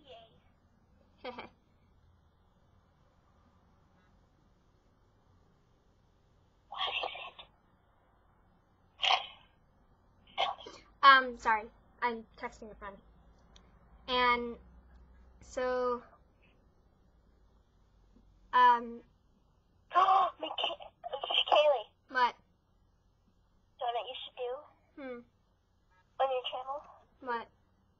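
A girl speaks casually and close into a microphone, with pauses.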